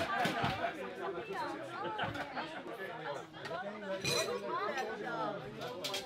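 A serving spoon clinks against a metal pot.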